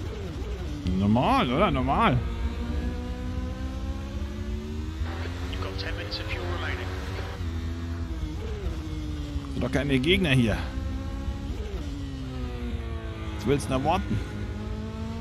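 Tyres squeal through tight corners.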